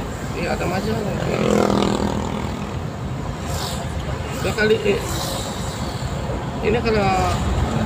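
A car drives steadily along a road with a low rumble.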